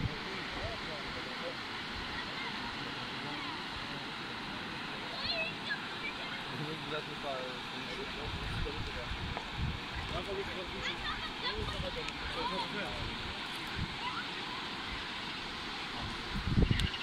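A shallow river rushes and splashes over rocks.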